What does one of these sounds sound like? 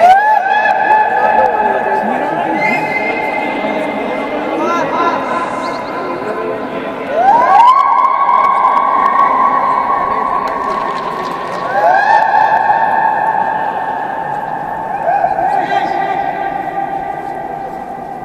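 Many people shout and call out, their voices echoing loudly around a huge domed hall.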